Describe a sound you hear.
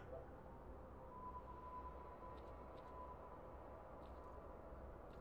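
A handheld detector hums with a steady tone.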